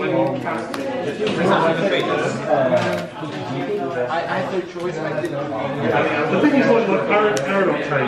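Playing cards riffle and shuffle in hands.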